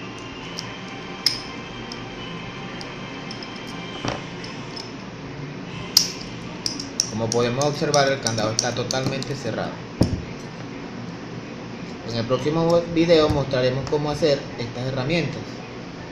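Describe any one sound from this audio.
A metal padlock clicks as its shackle is worked.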